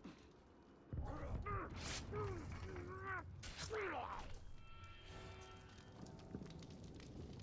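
Blades strike and clash in a fight.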